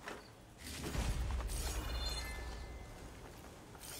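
A deep rumbling boom sounds in a game.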